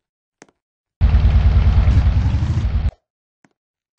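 A car engine roars as a car drives off.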